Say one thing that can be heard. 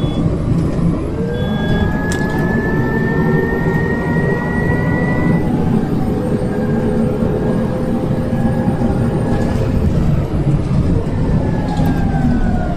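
A bus engine whines, rising and falling in pitch.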